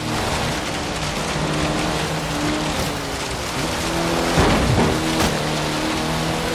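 A car engine roars steadily, shifting pitch as it speeds up and slows.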